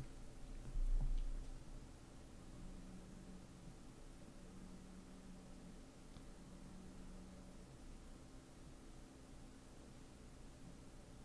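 A man speaks calmly and steadily into a close microphone.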